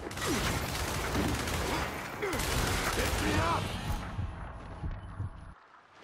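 Shotgun blasts boom at close range.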